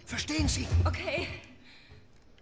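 A young woman cries out in fright close by.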